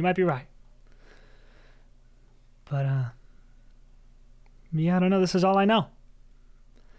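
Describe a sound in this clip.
A man speaks with animation over an online call microphone, in short bursts.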